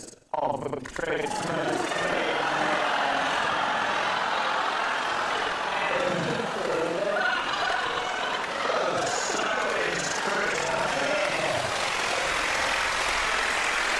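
A studio audience laughs loudly.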